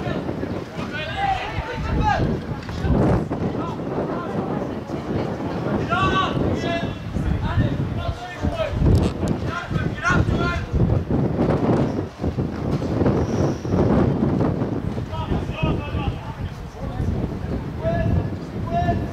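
Young men shout to each other outdoors on an open field.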